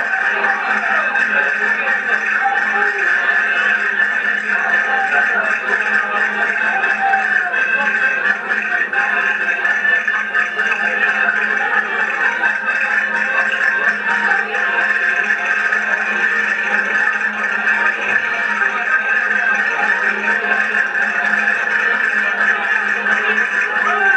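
An accordion plays a lively dance tune.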